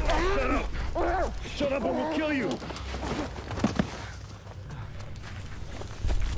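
Bodies scuffle and thud on the forest floor.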